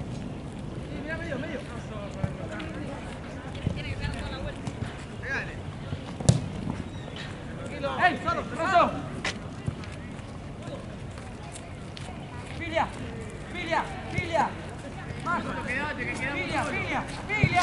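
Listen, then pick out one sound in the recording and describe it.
Young men shout and call out to each other across an open pitch.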